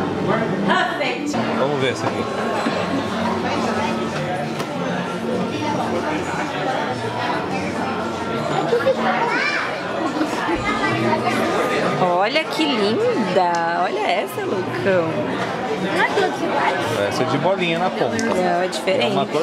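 A crowd of children and adults chatters nearby.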